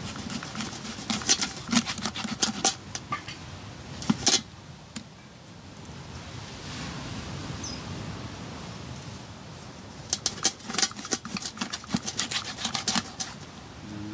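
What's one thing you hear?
A knife scrapes scales off a fish in quick, rasping strokes.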